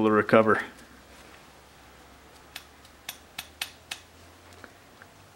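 A small metal spoon taps lightly as powder is tipped onto paper.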